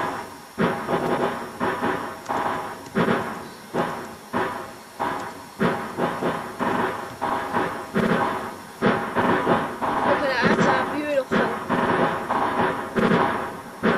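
A small steam engine chuffs steadily along a track.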